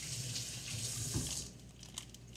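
A plastic wrapper crinkles close by.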